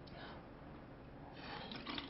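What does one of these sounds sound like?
A young man gulps a drink from a plastic bottle.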